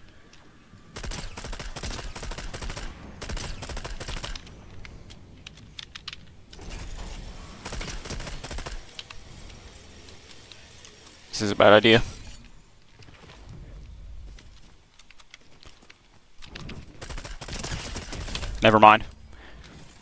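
A rifle fires repeated sharp shots.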